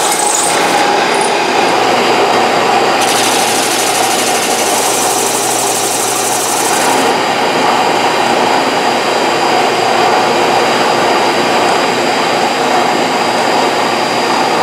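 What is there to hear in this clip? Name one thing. A sanding machine drones steadily throughout.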